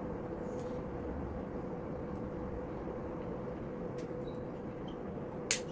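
Nail clippers click.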